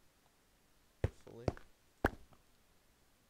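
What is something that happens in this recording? Blocks are set down with short, soft knocks.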